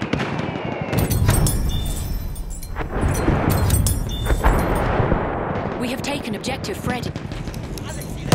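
Heavy explosions boom and rumble.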